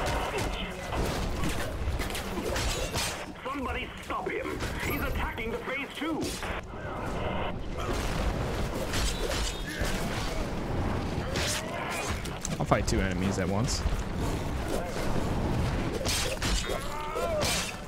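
Blows and clashing thuds of a fight ring out.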